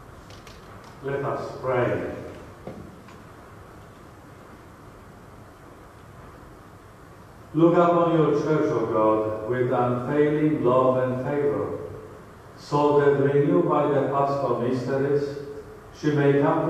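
A man speaks slowly and solemnly through a microphone in a large echoing hall.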